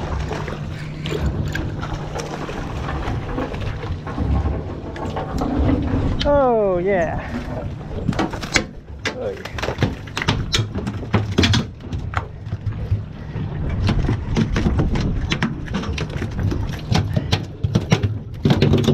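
Waves slap against a boat's hull.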